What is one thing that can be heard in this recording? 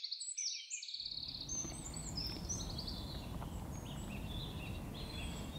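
Wind blows over grass by the water.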